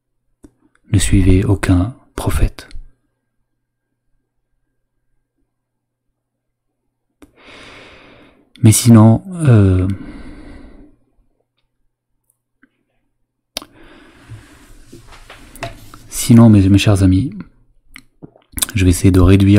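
A man speaks into a close microphone in short bursts, with pauses.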